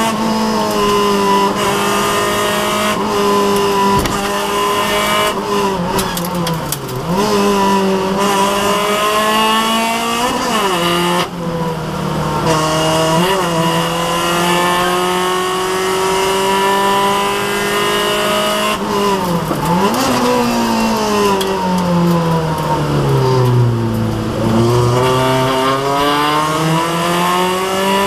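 A car engine revs hard and drops as gears change, loud from inside the car.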